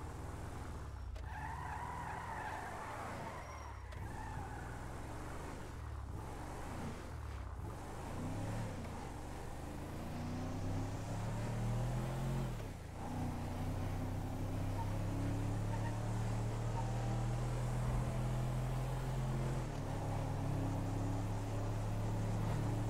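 A truck engine revs and climbs in pitch as the truck speeds up.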